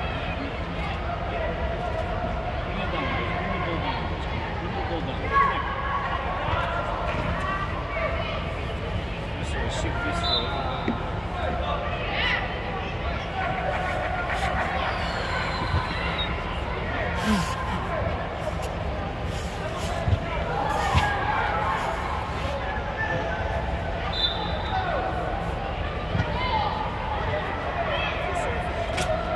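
Adults call out from the sideline in a large echoing hall.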